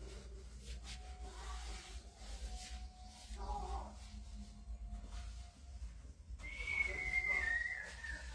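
Hands rub over bare skin.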